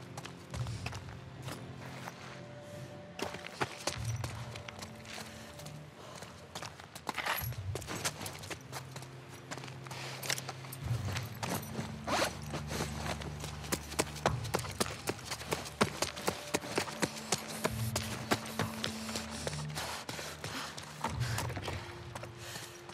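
Footsteps crunch on a debris-strewn floor.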